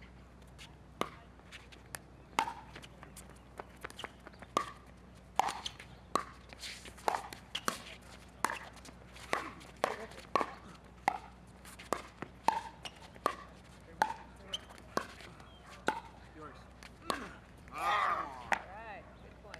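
Paddles hit a plastic ball back and forth with sharp pops, outdoors.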